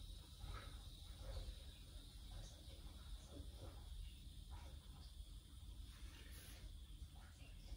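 A washing machine drum turns with a low steady rumble.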